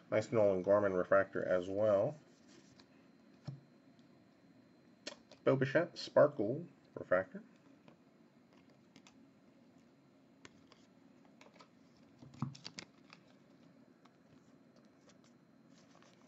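Trading cards slide and click against each other as they are shuffled.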